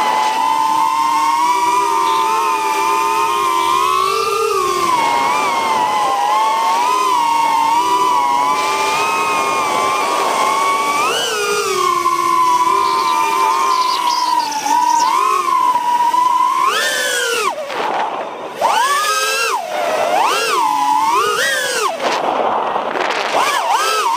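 Drone motors whine steadily, rising and falling in pitch as the drone speeds up and slows down.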